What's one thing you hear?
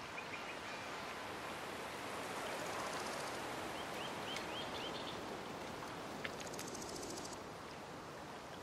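Water laps gently outdoors.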